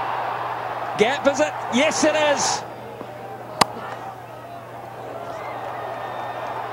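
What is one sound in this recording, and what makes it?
A large crowd cheers and murmurs in a stadium.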